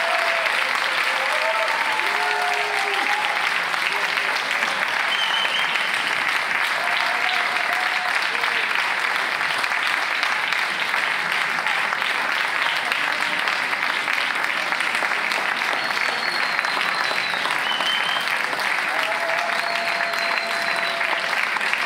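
A large crowd applauds and cheers loudly outdoors.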